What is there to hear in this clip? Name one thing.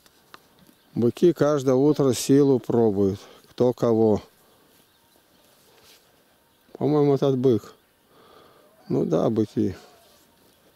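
A cow moos loudly several times nearby.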